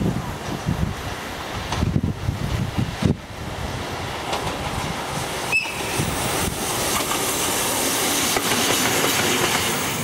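A locomotive rumbles as it approaches.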